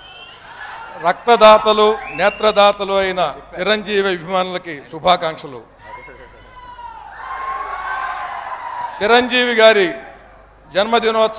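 A man speaks with feeling into a microphone over loudspeakers in a large echoing hall.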